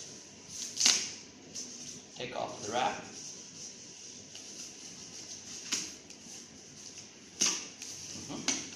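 Plastic wrapping crinkles and rustles as hands handle a packaged device.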